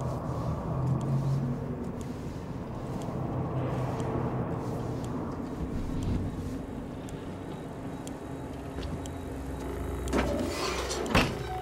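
A low machine hum drones steadily through a space.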